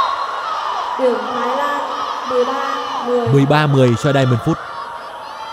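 Young women shout with excitement close by.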